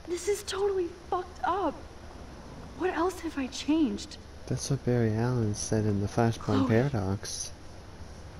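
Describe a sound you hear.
A young woman speaks in alarm, close by.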